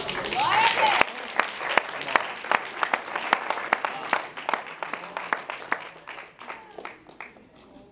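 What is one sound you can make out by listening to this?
An audience claps their hands.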